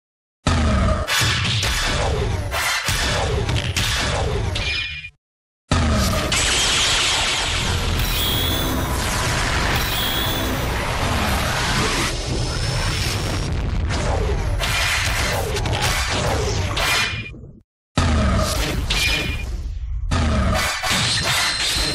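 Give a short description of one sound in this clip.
Punches and kicks land with sharp, quick thuds.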